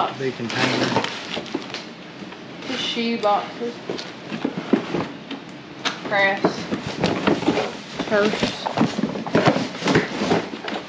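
A woman talks casually close by.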